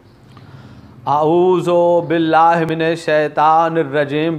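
A man sings in a loud, drawn-out voice close to the microphone.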